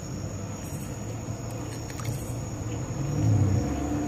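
Water splashes softly as a fish is released.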